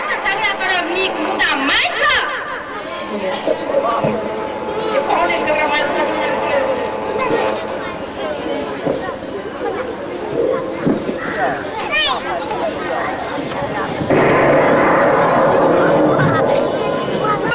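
A crowd of people chatter nearby outdoors.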